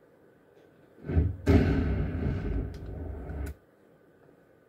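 An arcade machine plays a loud, booming intro sound through its speakers.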